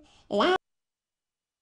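A woman sings a short high note.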